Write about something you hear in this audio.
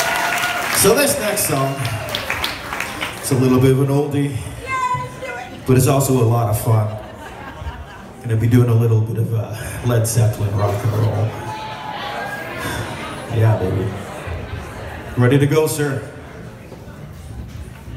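A man sings loudly through a microphone in a large echoing room.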